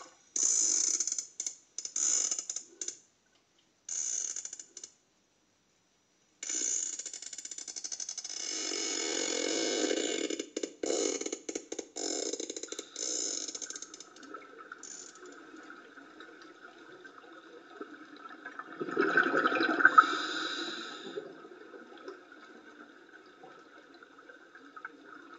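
Water gurgles and sloshes close to the microphone, muffled as if underwater.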